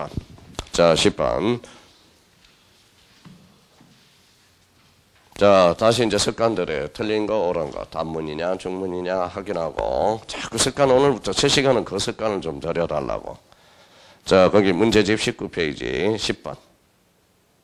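A man speaks through a microphone, lecturing with animation.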